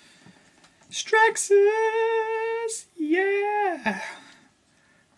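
A man makes loud, drawn-out vocal sound effects.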